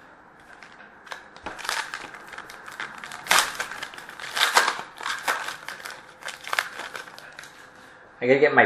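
Paper packs rustle and crinkle as hands tear them open close by.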